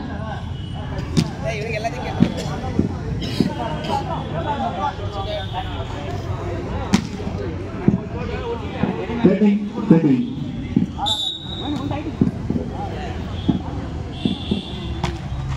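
Young men shout and call out to one another outdoors.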